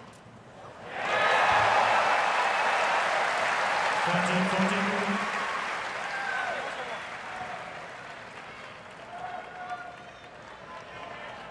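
A large crowd cheers and applauds loudly, then slowly dies down.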